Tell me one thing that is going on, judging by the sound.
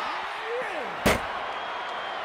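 A heavy body slams hard onto a mat.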